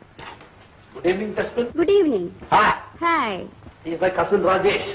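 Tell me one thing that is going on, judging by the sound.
A young woman speaks playfully and with animation, close by.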